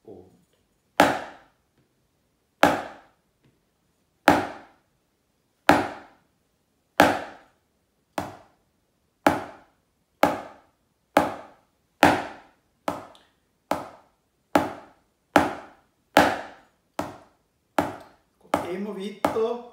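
A drumstick strikes a practice pad in sharp taps that come faster and faster.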